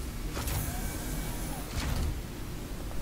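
A heavy sliding door opens with a hiss.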